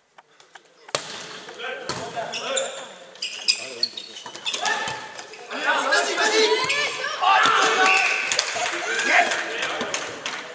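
Young men call out and shout during play.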